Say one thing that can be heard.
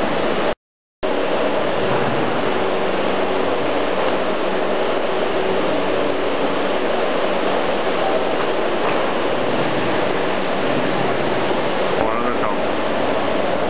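A fan whirs steadily.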